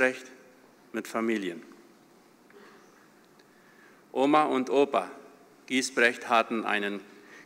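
An older man reads aloud calmly into a microphone, with pauses.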